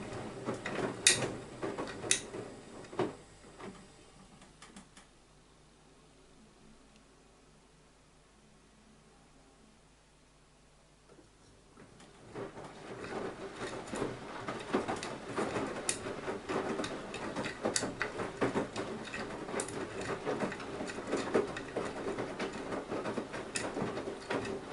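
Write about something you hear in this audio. Items in a washing machine drum knock and clunk as they tumble.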